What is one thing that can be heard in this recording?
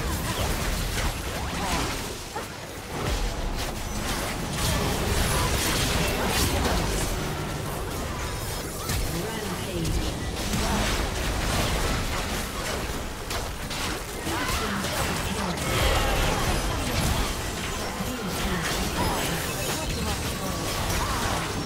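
Game spell effects crackle, whoosh and explode in a busy fight.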